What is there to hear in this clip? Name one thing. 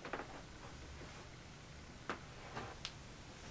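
Cloth rustles close by as a man moves away.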